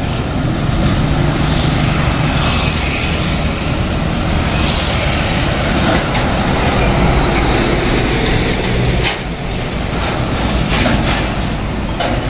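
Heavy trucks rumble by with deep diesel engines.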